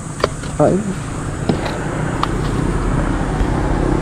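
A scooter seat lid clunks open.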